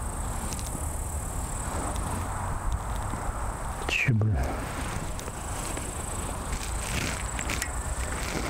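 Bicycle tyres crunch over dirt and gravel.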